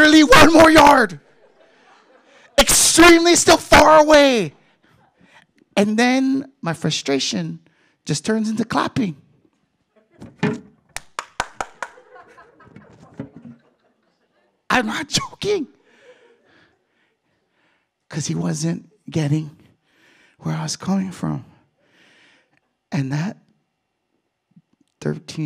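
A man speaks with animation into a microphone over loudspeakers, in a reverberant hall.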